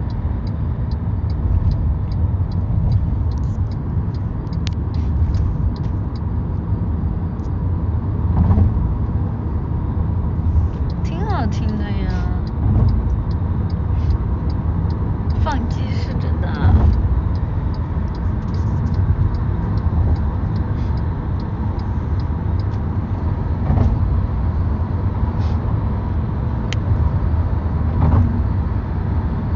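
A car's engine and road noise rumble low and steady.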